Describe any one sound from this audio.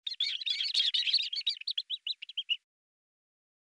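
Chicks cheep rapidly.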